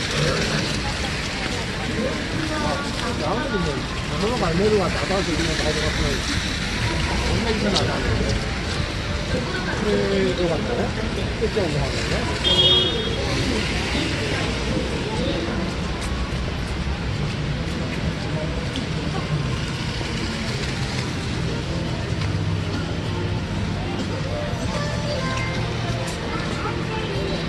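Rain patters steadily outdoors.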